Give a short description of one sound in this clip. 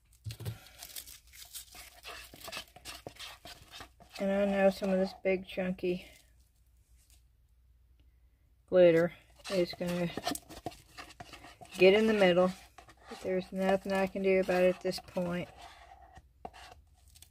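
A plastic cup clicks and taps as it is handled.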